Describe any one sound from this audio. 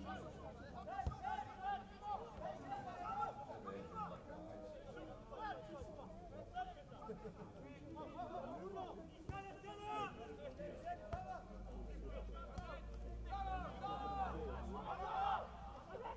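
Men shout and call to each other across an open playing field.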